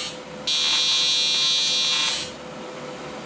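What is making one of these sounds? A welding torch hisses and crackles in short bursts.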